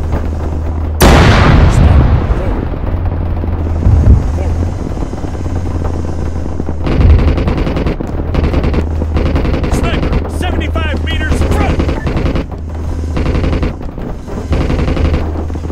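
Heavy explosions boom and rumble, one after another.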